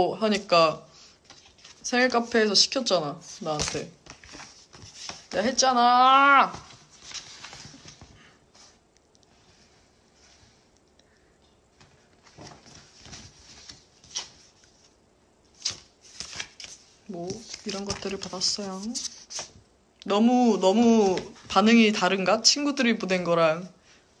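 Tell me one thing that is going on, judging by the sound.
Paper rustles in a young woman's hands.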